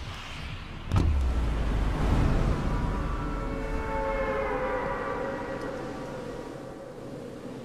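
A loud whoosh bursts and slowly fades.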